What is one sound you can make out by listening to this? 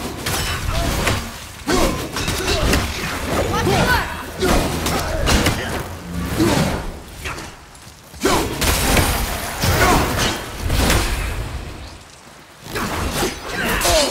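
An axe strikes with heavy thuds.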